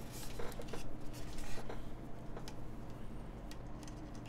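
A keyboard is set down on a desk with a clatter.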